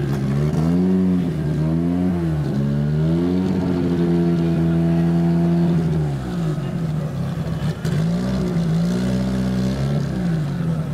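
A race car engine idles loudly and revs up and down in rough bursts.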